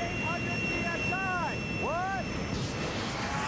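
A man speaks with a worried tone.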